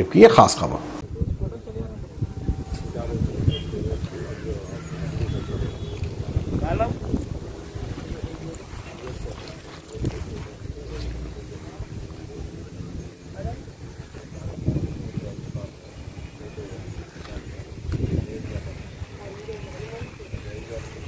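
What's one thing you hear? Outdoors, faint voices of people murmur in the distance.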